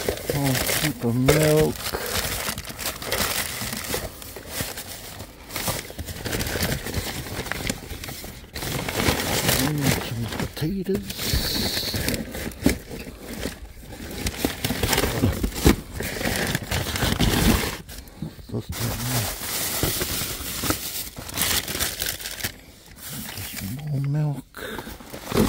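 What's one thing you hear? Plastic bags rustle and crinkle as hands rummage through rubbish.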